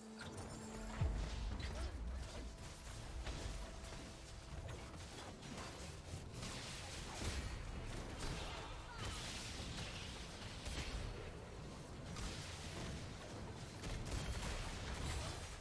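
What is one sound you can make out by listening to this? Game battle sounds clash and crackle with spell effects.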